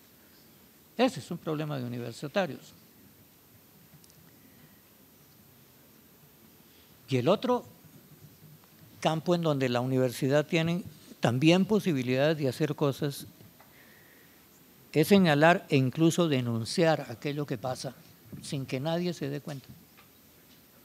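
An elderly man speaks calmly through a microphone in an echoing hall, in short bursts with pauses.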